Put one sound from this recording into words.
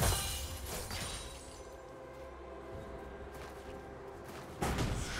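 Fantasy battle sound effects clash and burst in quick succession.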